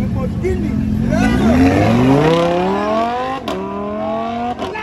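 A sports car accelerates away with a rising roar.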